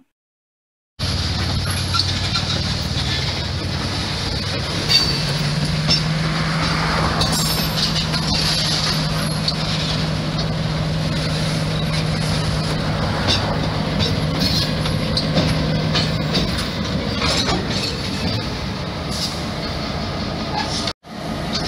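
A freight train's wheels roll and clatter along the rails.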